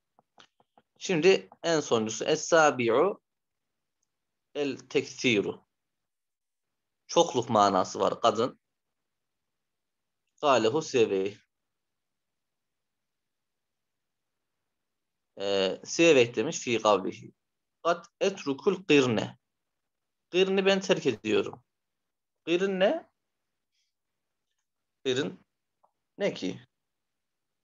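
A man speaks calmly in short phrases through a microphone, with pauses.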